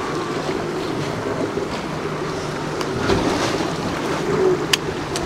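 Waves slap and splash against a small boat outdoors.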